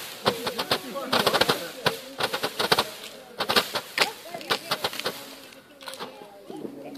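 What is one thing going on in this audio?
Fireworks crackle and bang rapidly outdoors.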